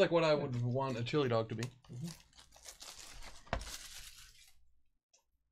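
Plastic wrap crinkles as it is torn off a box.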